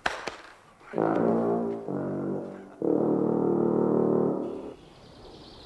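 A tuba plays loud low notes.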